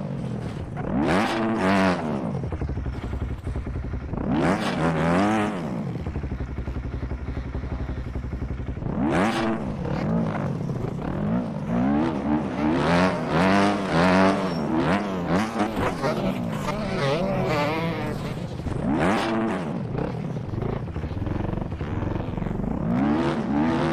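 A dirt bike engine revs up and down loudly, again and again.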